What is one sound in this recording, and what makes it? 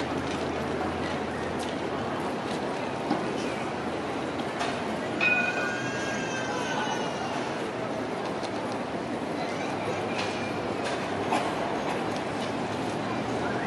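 A tram rolls slowly closer along its rails.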